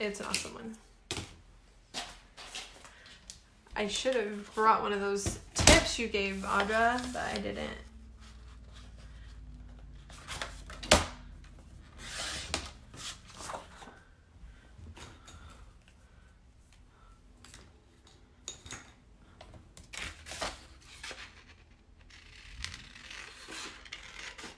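Paper rustles and crinkles as sheets are handled.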